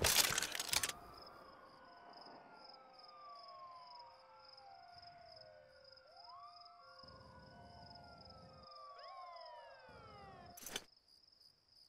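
Electronic tones sweep up and down with soft beeps.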